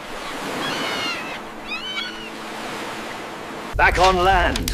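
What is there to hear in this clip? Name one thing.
Waves wash gently on the shore.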